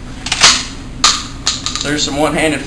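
A shotgun's slide is racked with a sharp metallic clack.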